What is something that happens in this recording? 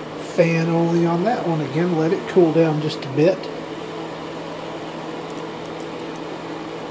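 An electric space heater hums.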